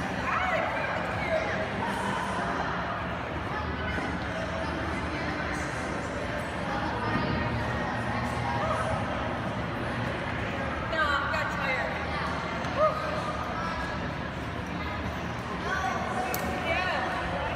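Several men and women chatter nearby in a large echoing hall.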